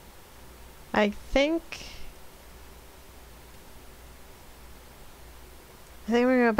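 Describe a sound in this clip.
A young woman speaks in short, animated bursts into a close microphone.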